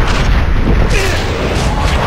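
A shimmering magical chime rings out.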